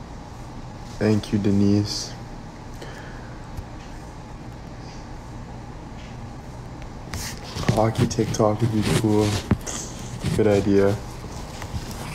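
A young man talks casually and close to a phone microphone.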